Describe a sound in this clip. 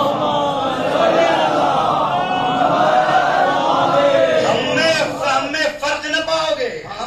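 A man chants with feeling into a microphone, heard through a loudspeaker in an echoing room.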